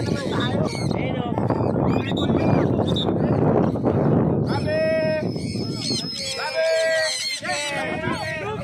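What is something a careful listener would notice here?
Birds call overhead.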